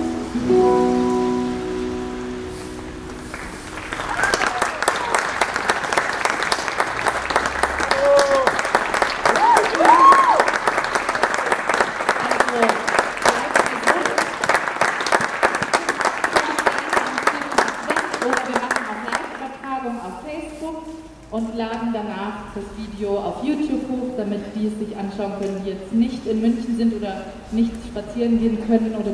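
A young woman sings into a microphone.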